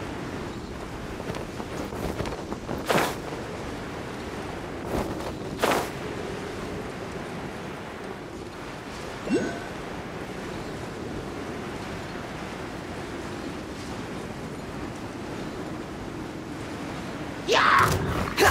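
Wind rushes steadily past while gliding through the air.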